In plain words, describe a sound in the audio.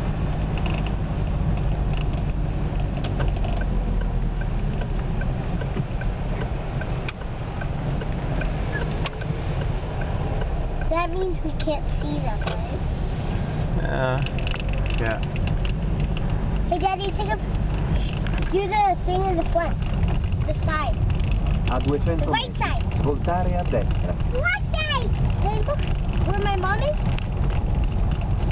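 Tyres roll over the road surface.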